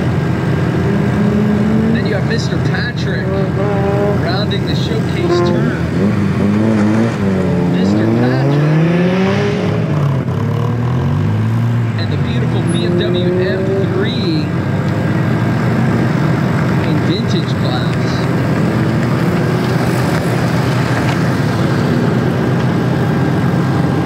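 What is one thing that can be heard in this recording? A sports car engine revs hard and rises and falls in pitch as the car speeds around a course.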